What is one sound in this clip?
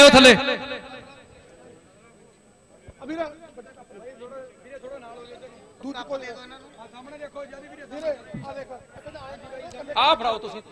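Several men talk and chatter in a crowd.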